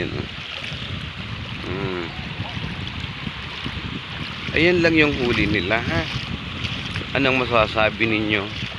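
Waves wash steadily onto a shore outdoors.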